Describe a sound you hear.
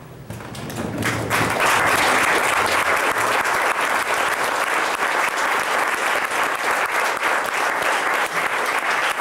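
A small audience applauds steadily.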